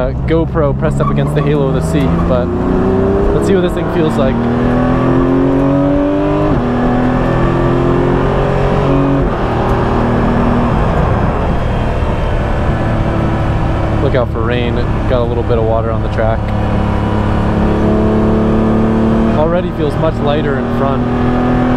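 Gearshifts clunk sharply inside the car.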